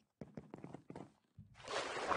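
Blocky thuds of wooden blocks being hit come in quick succession.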